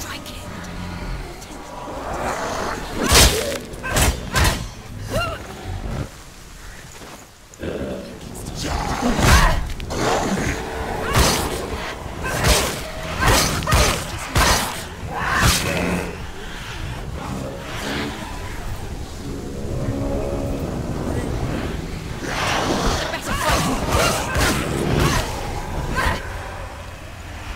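A woman grunts and cries out with effort as she fights.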